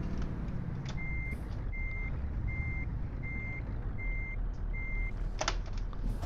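A truck's reversing alarm beeps at an even pace.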